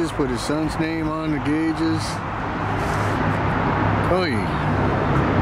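An older man speaks close by.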